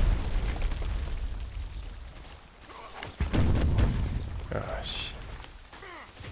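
Gun mechanisms click and rattle as weapons are swapped.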